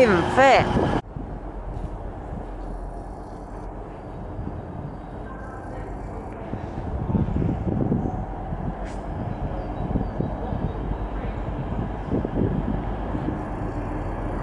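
A train rumbles on the rails as it slowly approaches.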